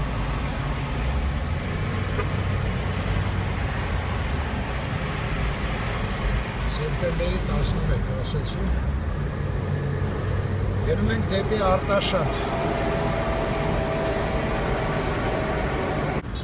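A truck engine rumbles close by.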